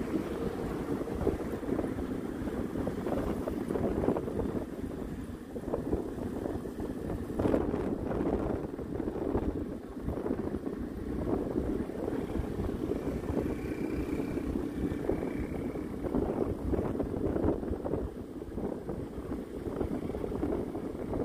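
A vehicle engine rumbles steadily while driving along a rough road.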